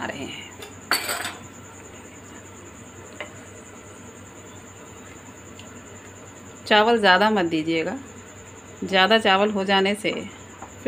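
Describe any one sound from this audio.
A wooden spoon stirs thick porridge in a pot.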